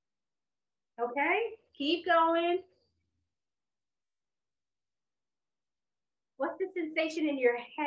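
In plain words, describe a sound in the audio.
A young woman speaks calmly and clearly into a nearby microphone.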